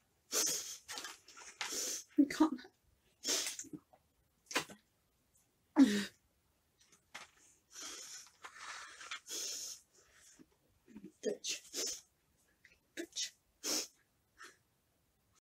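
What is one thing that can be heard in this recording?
A woman speaks quietly and close by, in short bursts with pauses.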